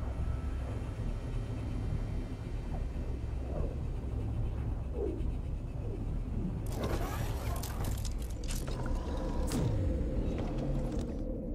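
A deep whooshing rumble roars and then fades.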